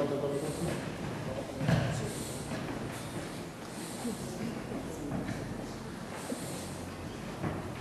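A chair scrapes on a wooden floor.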